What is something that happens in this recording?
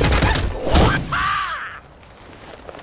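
A man punches, with a heavy whoosh and thud.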